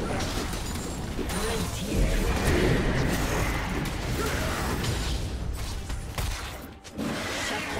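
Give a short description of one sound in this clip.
Magic spells crackle and whoosh in a busy fantasy battle.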